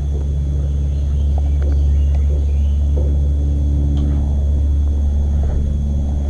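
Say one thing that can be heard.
A fishing reel clicks and whirs as the line is wound in.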